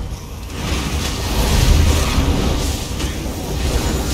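Fire roars in a blast of flame.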